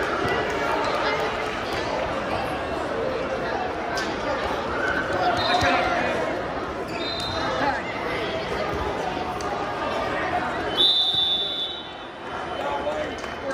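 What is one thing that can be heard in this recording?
A crowd of people chatters throughout a large echoing hall.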